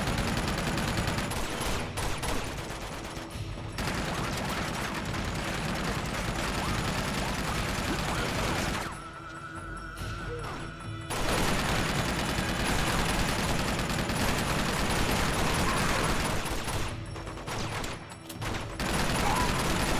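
Gunshots fire in rapid bursts amid loud explosive game noise.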